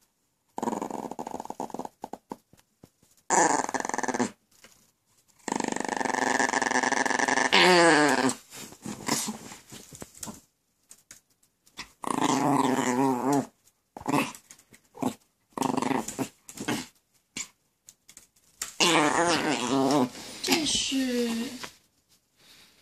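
A small dog growls playfully as it tugs at a toy.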